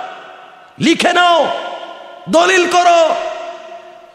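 A young man preaches loudly and passionately into a microphone, his voice echoing through loudspeakers.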